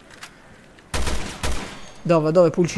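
A gun fires a few sharp shots.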